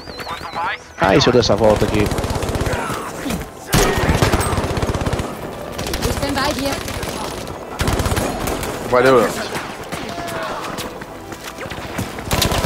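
A gun fires in rapid bursts close by.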